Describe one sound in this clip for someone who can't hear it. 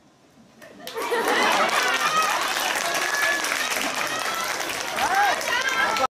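A group of young women shout and cheer with excitement in a large hall.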